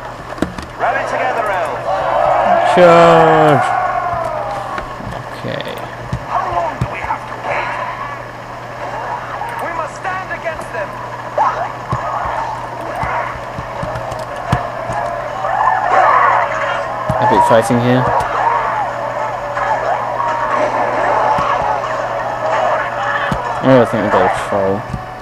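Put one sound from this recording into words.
Many warriors shout and cry out in battle.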